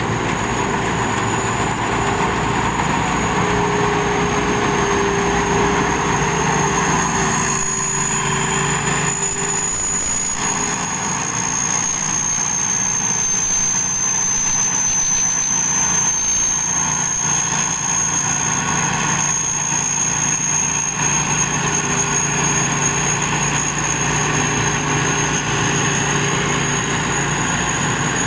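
A combine harvester engine drones steadily nearby.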